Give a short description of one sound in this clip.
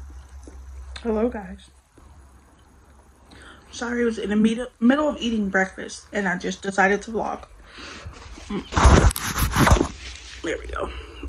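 A woman speaks close to the microphone in a tired, strained voice.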